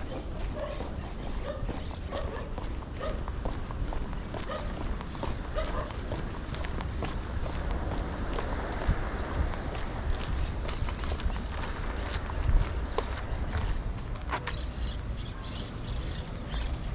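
Footsteps tap steadily on paving stones.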